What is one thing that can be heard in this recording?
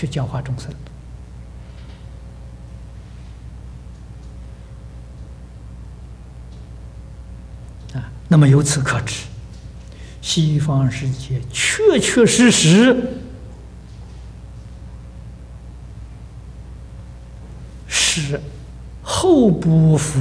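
An elderly man speaks with animation into a microphone, with pauses.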